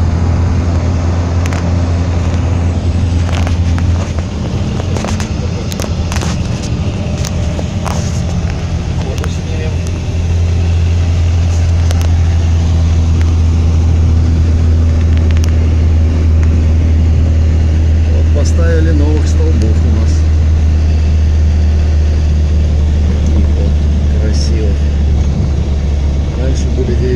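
Tyres crunch and rumble over packed snow.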